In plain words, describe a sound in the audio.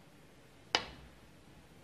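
A snooker cue strikes the cue ball with a sharp click.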